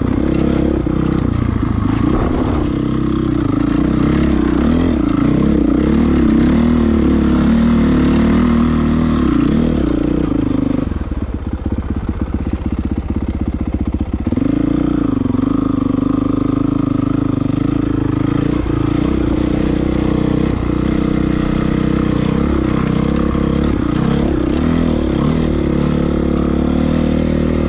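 Tyres crunch over snow and dirt.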